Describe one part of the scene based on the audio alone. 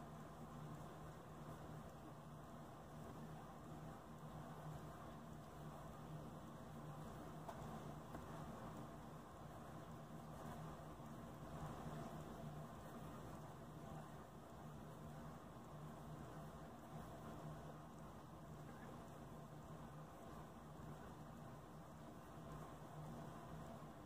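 A pen nib scratches softly across paper.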